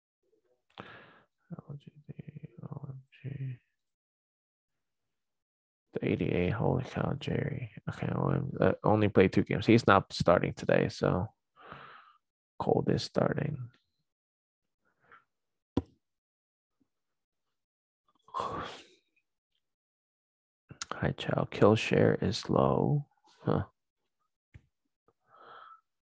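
A man talks calmly into a close microphone, with pauses.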